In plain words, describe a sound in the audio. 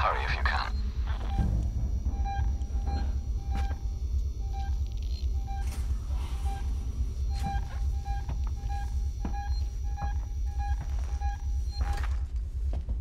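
A handheld tracker beeps in short, regular pulses.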